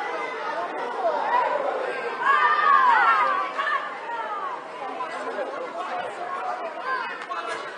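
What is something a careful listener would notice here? Children shout and call out on an outdoor pitch.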